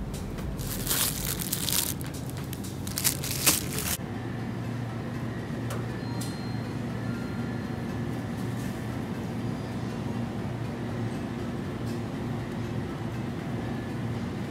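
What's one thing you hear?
A refrigerated display case hums steadily.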